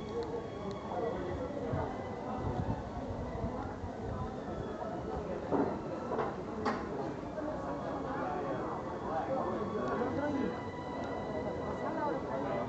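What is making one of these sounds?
A crowd of people chatters in a busy street outdoors.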